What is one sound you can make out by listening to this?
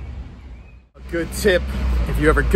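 A young man talks close to the microphone.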